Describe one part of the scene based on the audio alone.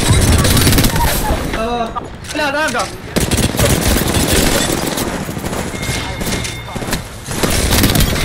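Rapid automatic gunfire rattles from a video game.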